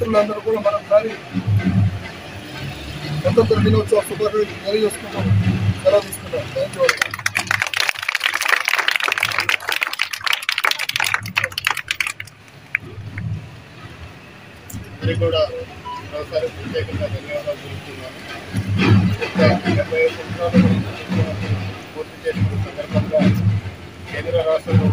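A man speaks firmly through a microphone outdoors.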